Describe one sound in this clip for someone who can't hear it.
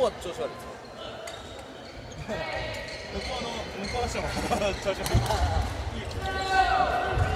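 Badminton rackets hit shuttlecocks with sharp pops.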